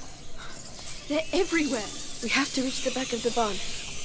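A young woman answers calmly, close by.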